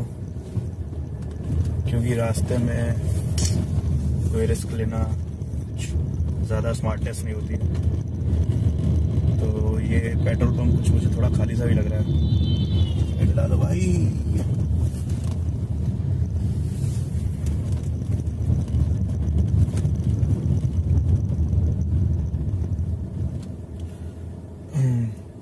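Road and engine noise rumble inside a moving car.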